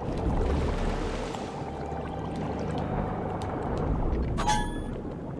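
Muffled underwater bubbling and gurgling goes on.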